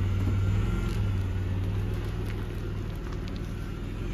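A car engine runs as a car slowly pulls away.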